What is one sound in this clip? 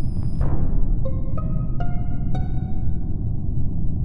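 Chiming tones ring out one after another.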